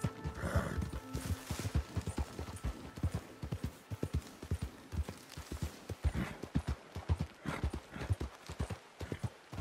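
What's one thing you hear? A horse gallops with quick, heavy hoofbeats.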